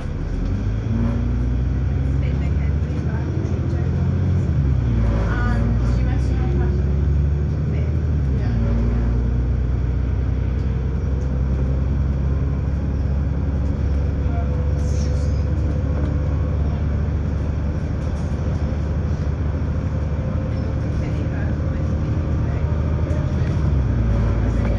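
A bus engine hums and drones steadily as it drives along.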